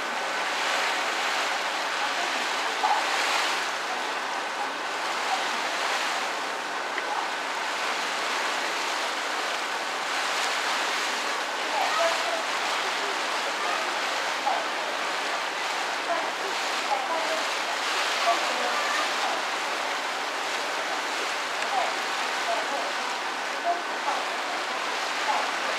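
Wind blows steadily outdoors over open water.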